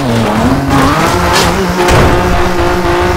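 A car scrapes and thumps against a roadside bank.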